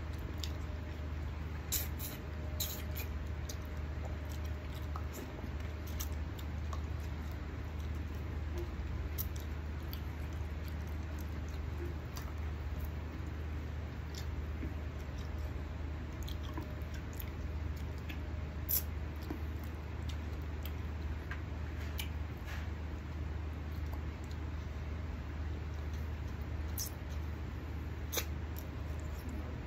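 A man chews and smacks his lips close to a microphone.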